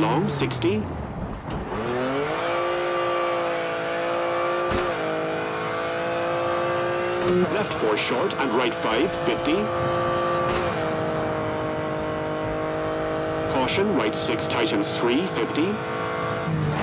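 A rally car engine revs hard and shifts up through the gears.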